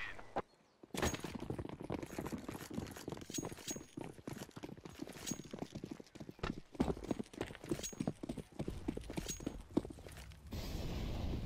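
Quick footsteps patter on hard ground.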